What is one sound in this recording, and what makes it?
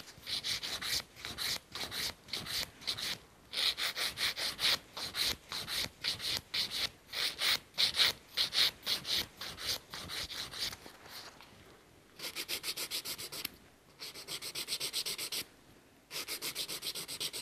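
A nail file rasps back and forth quickly across a fingernail.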